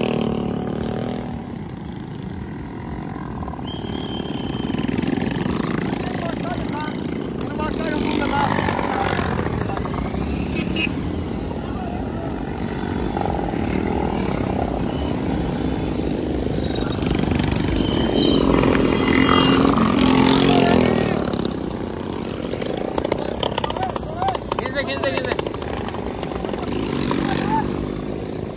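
Motorcycle engines rumble steadily close by.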